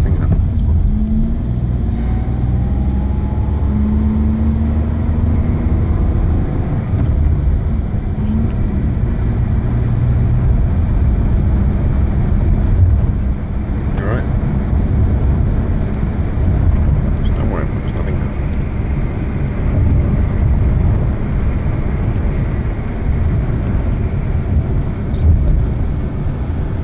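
Tyres roll over asphalt with a low rumble.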